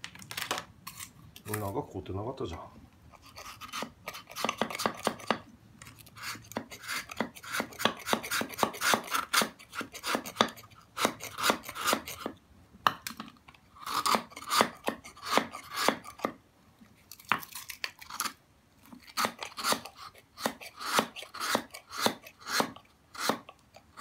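A knife blade scrapes and shaves hard ice in quick strokes.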